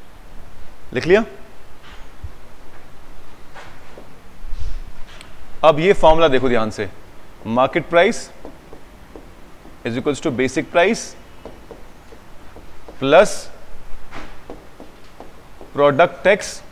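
A man speaks calmly and clearly, as if explaining, close by.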